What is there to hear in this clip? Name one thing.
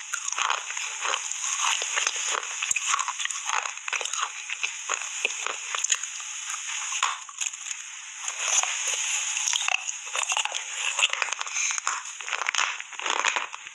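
A woman chews food loudly and wetly close to a microphone.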